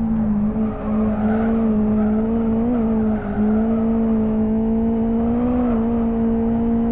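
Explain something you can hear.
Tyres squeal briefly through the corners.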